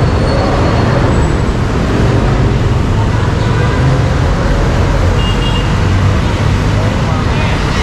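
A car engine purrs as it drives past.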